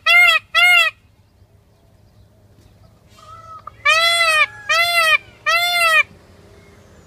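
A peacock gives loud, piercing wailing calls close by.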